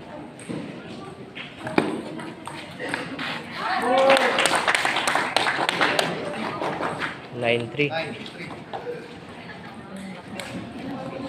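A table tennis ball clicks back and forth on paddles and a table.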